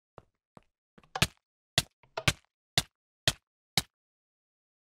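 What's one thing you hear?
A game character burns in lava, with short hurt sounds coming at a steady pace.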